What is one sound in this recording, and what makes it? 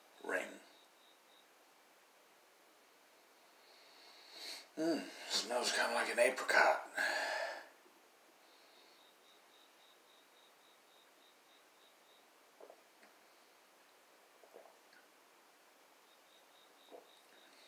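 A young man sips from a bottle.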